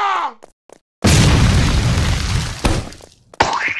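An explosion booms with a rushing hiss.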